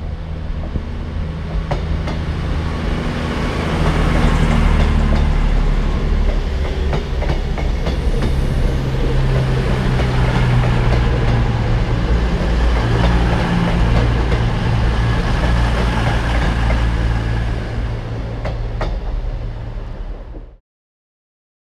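A diesel train's engines throb loudly as the train passes close by.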